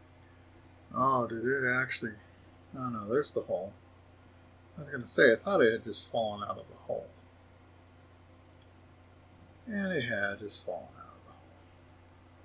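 A middle-aged man talks calmly.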